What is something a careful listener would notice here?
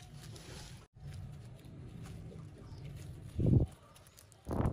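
Dry leaves rustle as they are wrapped by hand.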